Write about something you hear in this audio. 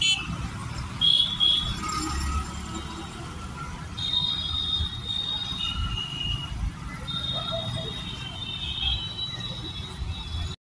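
Vehicle horns honk again and again.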